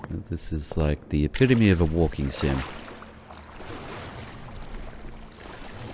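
Water sloshes and splashes.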